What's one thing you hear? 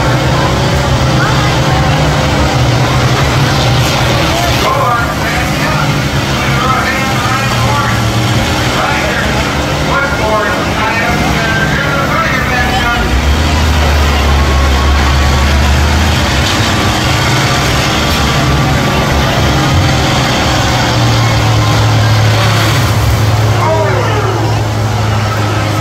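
Engines rumble and roar loudly.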